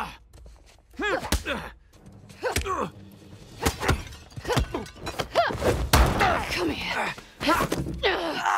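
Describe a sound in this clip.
A woman grunts and shouts with effort.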